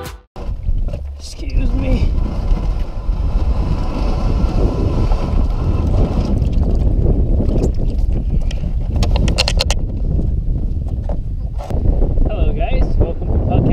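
A young man talks close by, half drowned by the wind.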